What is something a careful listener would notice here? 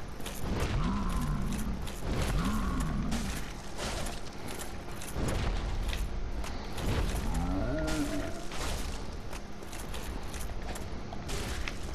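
Heavy blows clang and thud repeatedly.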